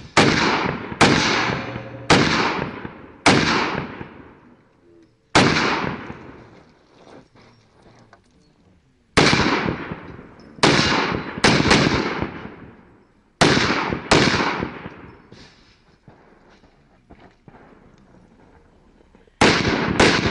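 Pistol shots crack loudly outdoors, each ringing out and fading.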